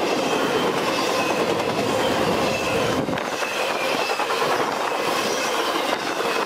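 A freight train rushes past close by, its wheels rumbling and clattering loudly on the rails.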